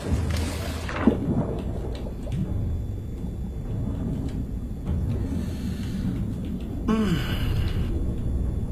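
A low, muffled underwater rumble drones on.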